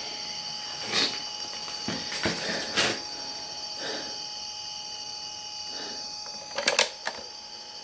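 Plastic buttons on a cassette recorder click as they are pressed.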